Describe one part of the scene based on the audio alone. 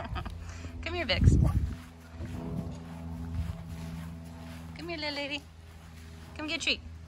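Small wheels roll softly over grass.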